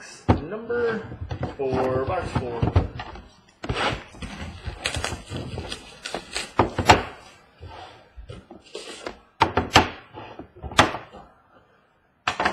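Cardboard boxes knock lightly as they are set down on a hard table.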